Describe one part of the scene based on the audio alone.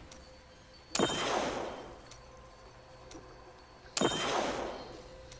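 A shimmering magical whoosh rings out twice.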